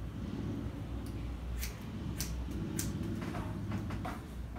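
Scissors snip sharply through hair, several times.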